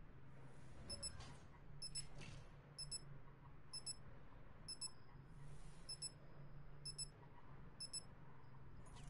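Short electronic beeps count down, about once a second.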